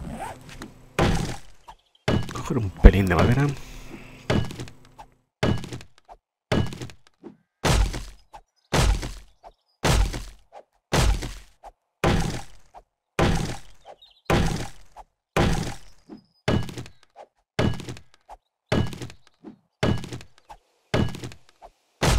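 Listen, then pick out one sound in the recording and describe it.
An axe chops into a tree trunk with steady, heavy thuds.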